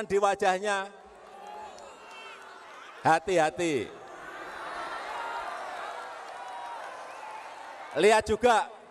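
A large crowd cheers and shouts in the distance.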